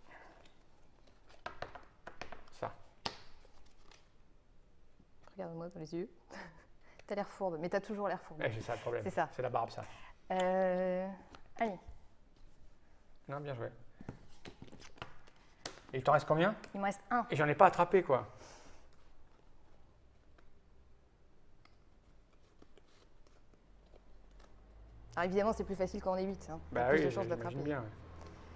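Playing cards shuffle and tap together.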